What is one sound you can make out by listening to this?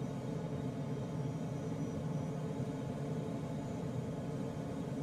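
Wind rushes steadily past a gliding aircraft's cockpit.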